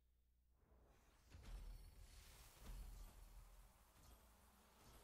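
A swelling whoosh and shimmering sparkle effect rises.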